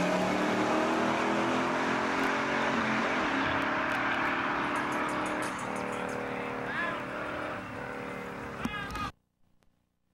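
A car engine roars and revs at a distance.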